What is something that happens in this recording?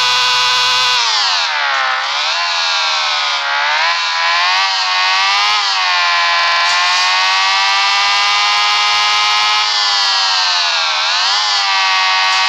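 A motorbike engine whines steadily, its pitch rising and falling as the bike speeds up and slows down.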